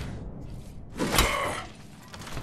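A crate bursts open with a sharp hiss.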